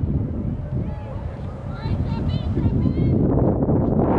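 Young players shout to each other in the distance.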